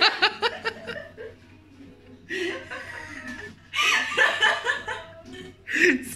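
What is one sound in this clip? An elderly woman laughs close by.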